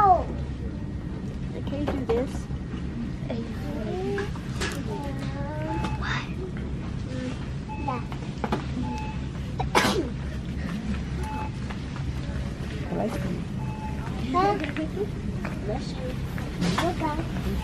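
A small girl speaks in a high voice.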